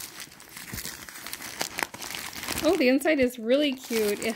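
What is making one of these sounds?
Paper rustles and crinkles as hands handle it.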